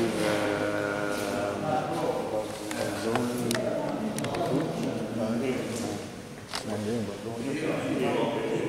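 Several elderly men talk and call out nearby in an echoing hall.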